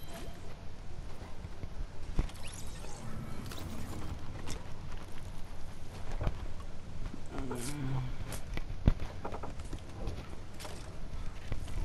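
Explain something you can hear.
Footsteps patter on hard ground in a video game.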